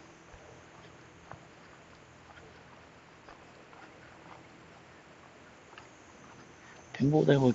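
Footsteps tread slowly on a stone path.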